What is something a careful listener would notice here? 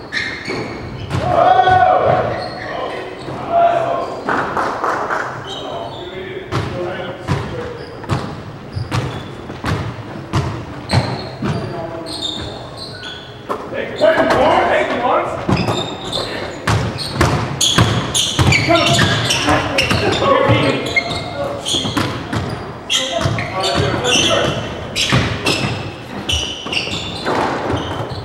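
A ball smacks hard against the walls in a large echoing court.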